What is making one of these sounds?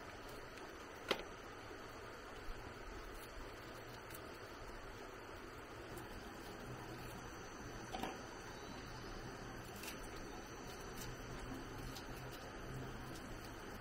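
A knife chops leaves with sharp taps.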